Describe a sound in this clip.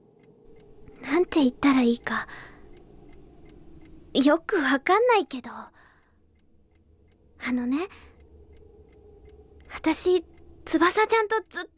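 A young woman sings softly.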